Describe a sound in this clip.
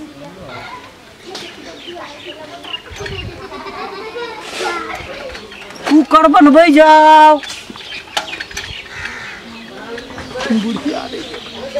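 A young man calls out loudly in a singing voice, close by.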